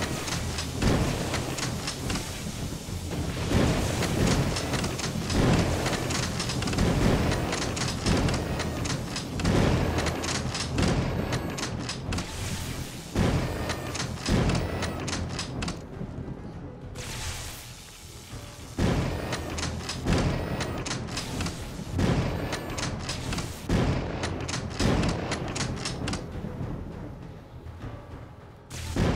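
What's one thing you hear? Loud rifle shots ring out one after another, each with a short echo.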